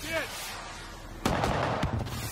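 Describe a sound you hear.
A rocket fires with a whoosh.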